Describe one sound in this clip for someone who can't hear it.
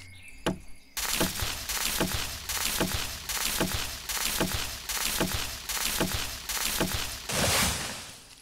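An axe chops at wood with steady, rhythmic blows.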